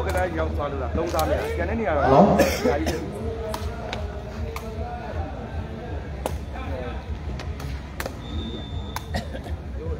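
A ball thuds against a player's foot.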